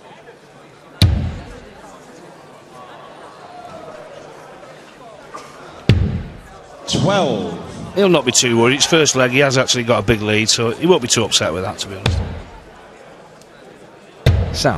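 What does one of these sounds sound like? Darts thud into a board.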